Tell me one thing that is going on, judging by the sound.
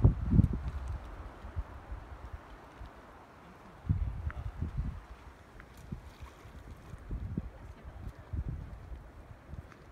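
Stones plop into lake water.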